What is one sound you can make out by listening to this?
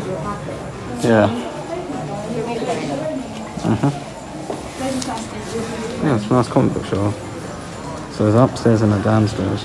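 A young woman talks quietly close by.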